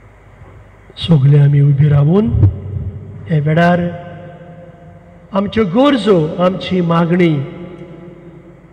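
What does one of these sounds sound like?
A man chants a prayer in a steady sung voice through a microphone, echoing in a large hall.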